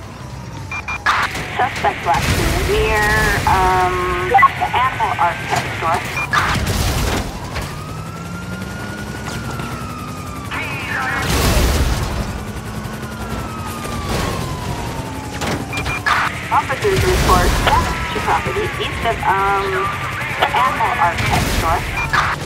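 Cars crash into each other with loud metallic bangs.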